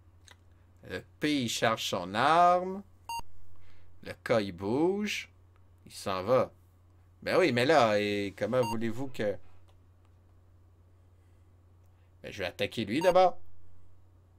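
A man talks with animation, close to a headset microphone.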